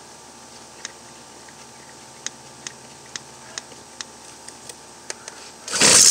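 Plastic parts click as hands take apart a small engine.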